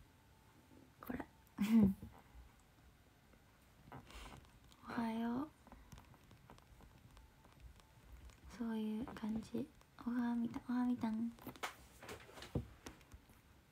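A young woman speaks softly and casually into a nearby microphone, in short bursts with pauses.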